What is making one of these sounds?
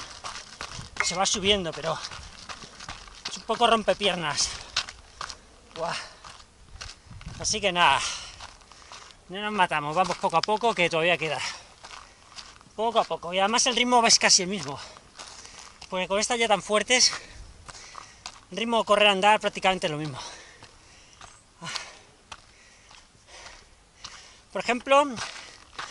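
A man talks breathlessly close by in short bursts.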